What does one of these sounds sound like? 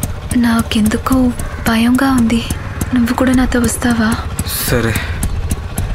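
A young woman speaks anxiously up close.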